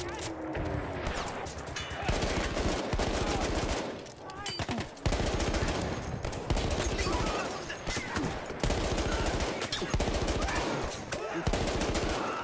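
A machine gun fires in rapid, loud bursts.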